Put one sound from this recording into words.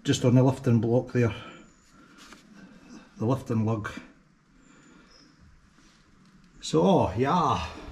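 A man speaks calmly close by, explaining.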